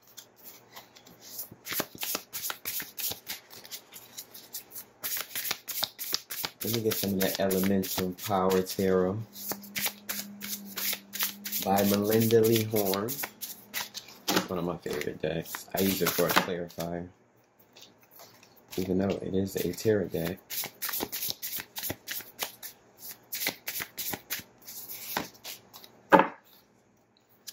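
Playing cards are shuffled and flicked by hand with quick papery snaps.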